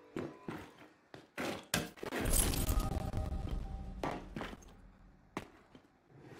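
Heavy boots thud on a wooden floor.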